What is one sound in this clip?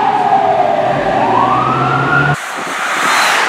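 A fire truck's siren wails.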